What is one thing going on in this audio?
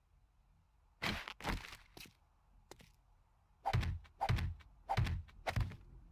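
Wooden blocks thud into place.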